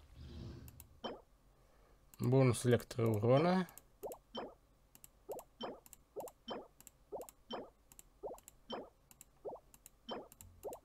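Short game menu chimes ring one after another at a steady pace.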